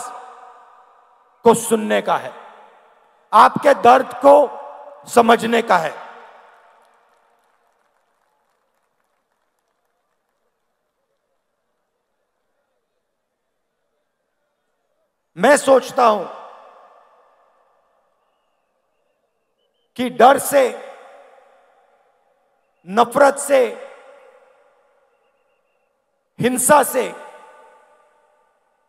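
A man speaks forcefully into a microphone over loudspeakers, echoing in a large open space, in short bursts with long pauses.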